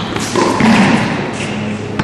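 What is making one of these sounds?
A tennis ball is struck with a racket.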